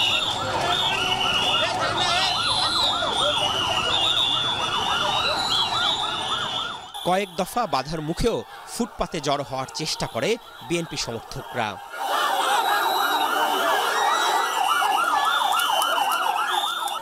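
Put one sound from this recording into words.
A crowd of men shouts and chants loudly and rhythmically.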